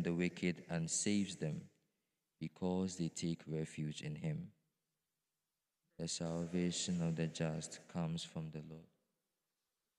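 A young man reads out calmly through a microphone.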